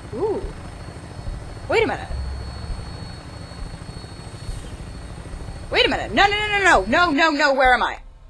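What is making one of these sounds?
A helicopter engine rumbles low and steady, then cuts off.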